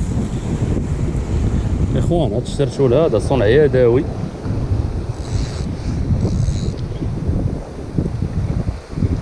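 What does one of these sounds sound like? Wind rumbles steadily outdoors over open water.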